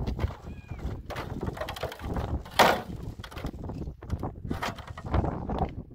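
Concrete blocks clatter and thud as they are dropped into a metal wheelbarrow.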